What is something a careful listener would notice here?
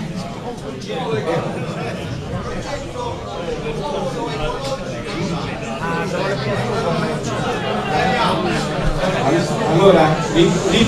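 A middle-aged man speaks with animation into a microphone in a room with some echo.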